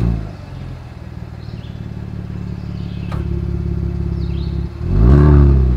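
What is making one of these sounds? A car engine idles with a deep exhaust rumble.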